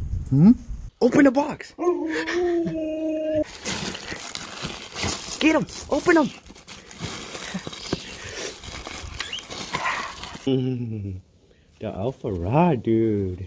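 A husky howls and yips loudly.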